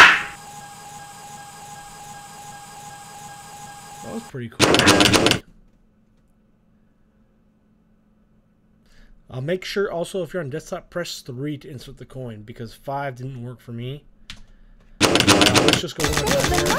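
A pinball machine plays bursts of electronic music and sound effects.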